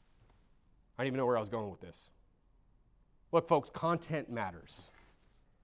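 A man speaks calmly and deliberately into a microphone, with pauses between phrases.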